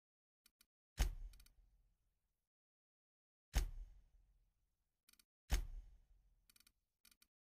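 Deep whooshing thuds sound as menu tabs switch.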